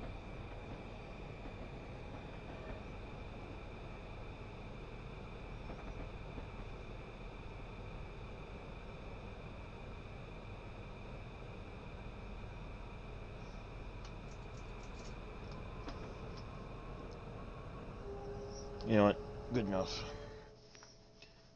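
A subway train rumbles steadily along the track.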